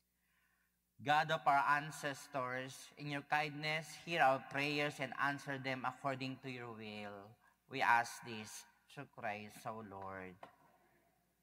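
A man sings a slow chant through a microphone in a large echoing hall.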